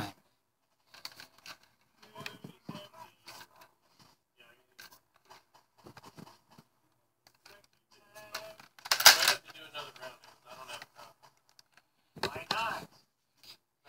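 A plastic toy blaster clicks and rattles as it is handled.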